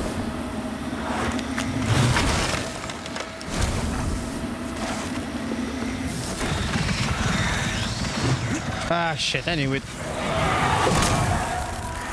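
Magic blasts whoosh and crackle.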